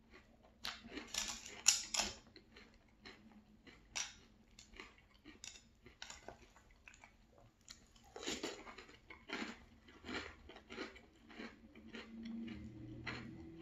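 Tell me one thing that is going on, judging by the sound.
A man crunches cereal with loud, wet chewing close to a microphone.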